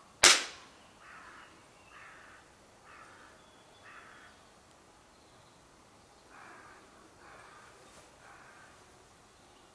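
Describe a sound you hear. An elderly man murmurs a quiet prayer.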